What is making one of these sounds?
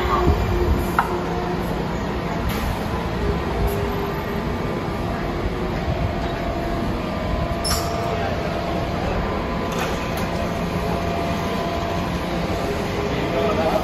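A subway train rumbles as it rolls along beside an echoing platform.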